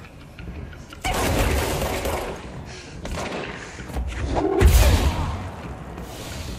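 A fiery explosion bursts with a deep boom.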